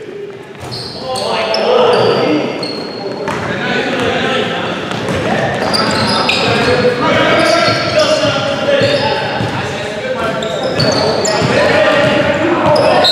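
Men shout to each other across a large echoing gym.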